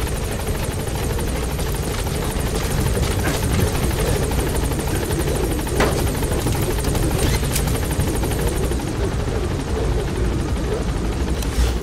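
A helicopter's rotor thumps and its engine roars close by.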